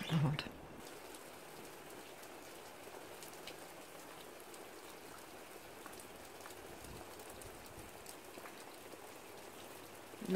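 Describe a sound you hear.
Light rain patters softly outdoors.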